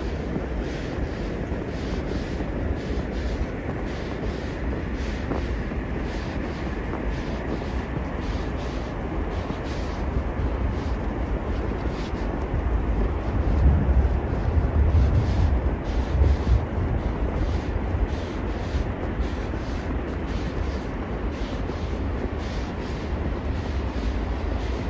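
Footsteps crunch steadily through fresh snow.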